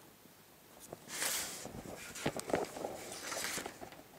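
A pencil scratches along paper.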